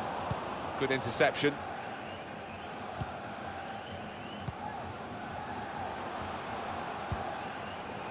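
A football is kicked with short dull thuds.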